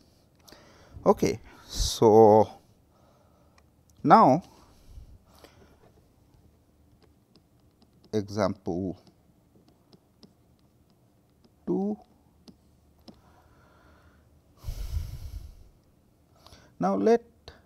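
A middle-aged man speaks calmly through a close microphone, in short phrases with long pauses.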